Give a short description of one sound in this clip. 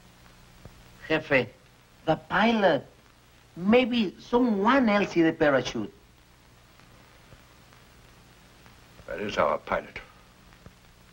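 A middle-aged man speaks gruffly and with feeling, close by.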